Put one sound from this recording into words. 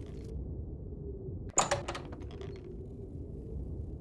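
A wooden door opens with a thud.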